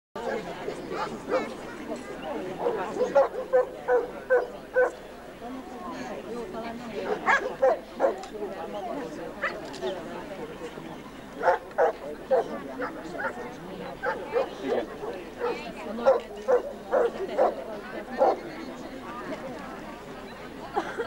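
Several men and women talk and call out outdoors nearby.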